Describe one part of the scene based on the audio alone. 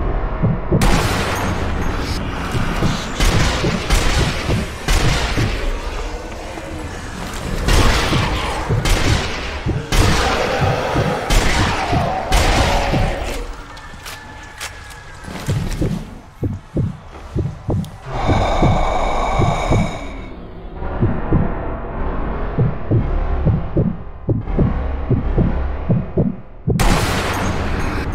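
A rifle fires loud, echoing gunshots.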